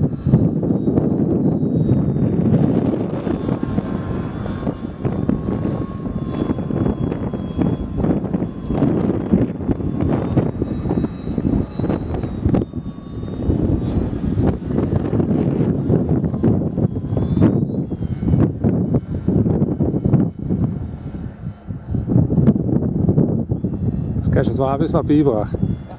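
A model plane's electric motor whines high overhead.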